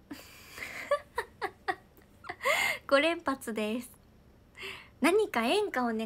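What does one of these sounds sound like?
A young woman laughs brightly.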